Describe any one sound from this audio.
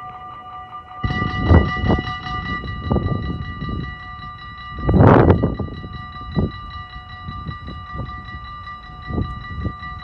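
Wind buffets the microphone outdoors in gusts.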